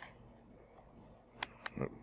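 A hand slaps a man's cheek.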